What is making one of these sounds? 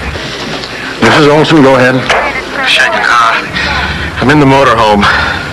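A man speaks briskly into a handheld radio nearby.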